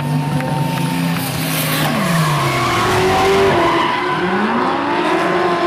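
Tyres squeal on asphalt as the drift cars slide.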